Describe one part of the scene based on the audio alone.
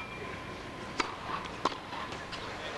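A tennis ball is struck sharply with a racket a few times.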